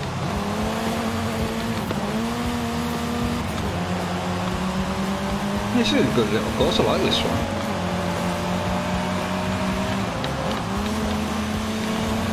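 A car engine drones and revs steadily, shifting gears.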